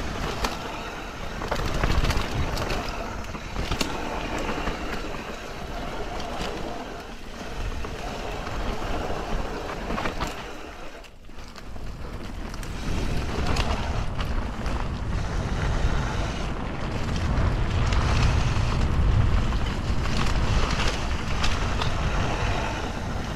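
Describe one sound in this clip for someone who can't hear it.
Wind rushes past at speed.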